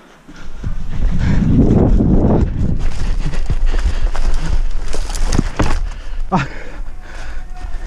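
Footsteps crunch and rustle through dry leaves at a run.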